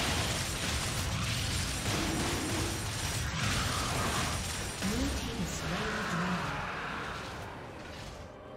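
Game battle effects crash and roar as a dragon is slain.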